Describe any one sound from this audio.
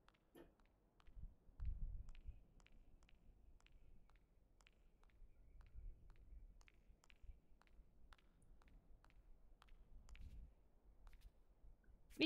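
Soft footsteps tap at a steady pace.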